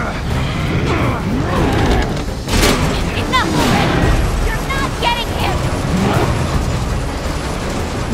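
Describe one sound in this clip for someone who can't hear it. Fire roars with a deep, steady rumble.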